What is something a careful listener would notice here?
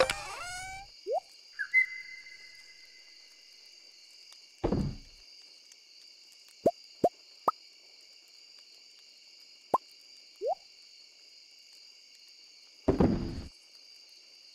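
Short game menu clicks and pops sound as items are moved around.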